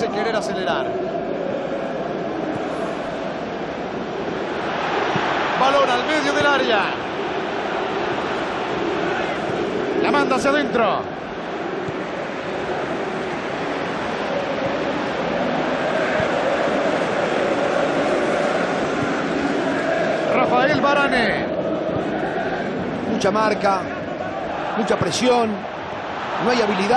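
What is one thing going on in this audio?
A stadium crowd roars steadily in the background.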